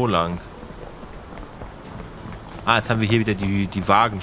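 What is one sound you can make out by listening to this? Footsteps tread on wet cobblestones.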